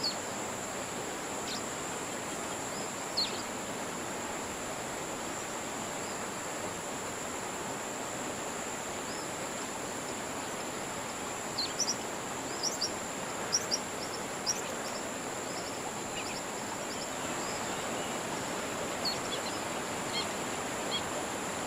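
Gentle wind blows over calm open water.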